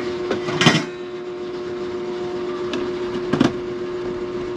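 A plastic lid clatters onto a plastic jar.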